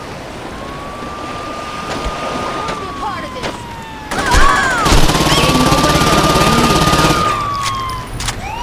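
A police siren wails nearby.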